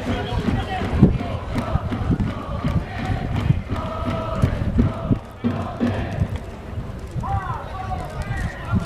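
Drums thump among the crowd.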